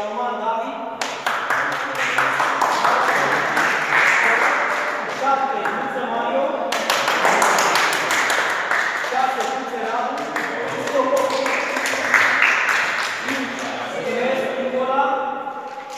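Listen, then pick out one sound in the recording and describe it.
A group of people applaud.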